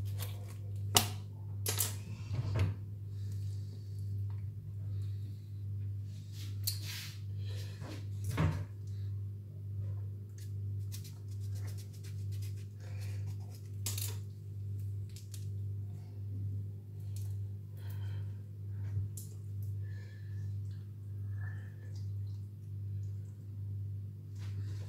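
Wet flesh squelches and tears as hands pull it apart.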